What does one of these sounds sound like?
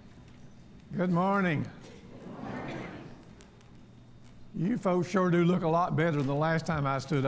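A man speaks loudly through a loudspeaker in a large echoing hall.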